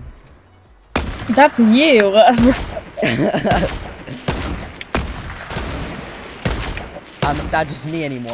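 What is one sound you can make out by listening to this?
A sniper rifle fires sharp single shots several times.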